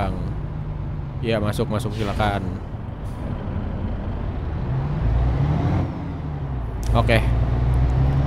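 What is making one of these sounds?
A truck engine hums steadily at low pitch.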